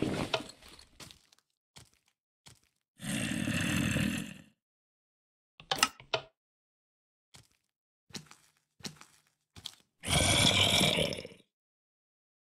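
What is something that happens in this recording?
Soft game clicks sound as items are picked up and placed.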